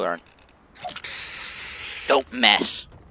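Spray paint hisses steadily from a can.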